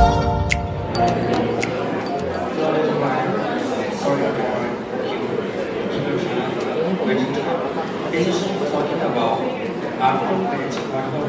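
A young man reads aloud steadily into a microphone, heard through a loudspeaker.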